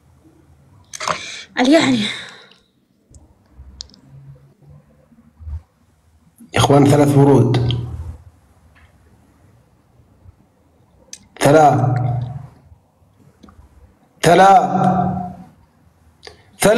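A young woman speaks casually over an online call, in short bursts.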